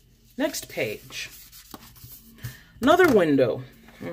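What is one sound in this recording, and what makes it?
A sheet of stickers rustles as it is handled.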